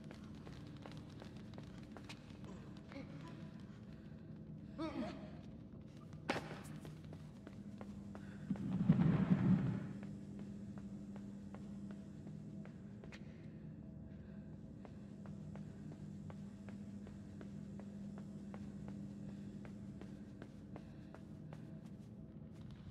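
Quick footsteps patter across a hard floor.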